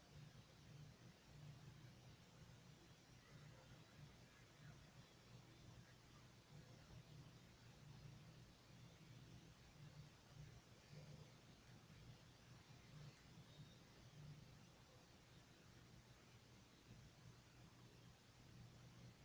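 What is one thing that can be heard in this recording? Video game music plays quietly.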